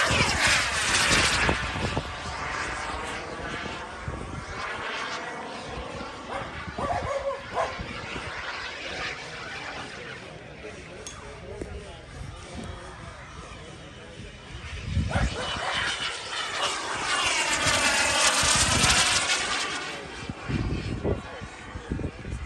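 A jet plane roars overhead, its rushing sound swelling and fading as it passes.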